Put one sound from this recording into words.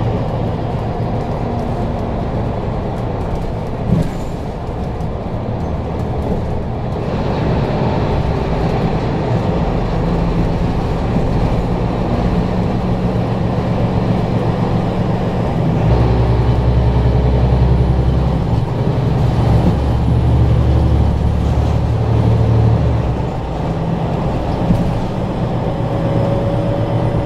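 A vehicle's engine hums steadily, rising and falling as it drives.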